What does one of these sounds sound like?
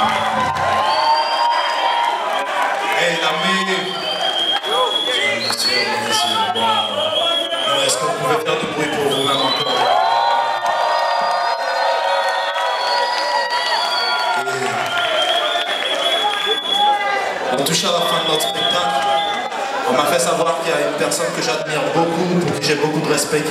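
A live band plays guitar, drums and keyboards.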